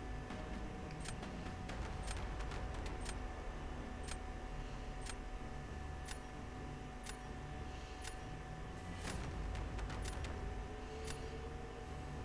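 A countdown timer ticks once a second.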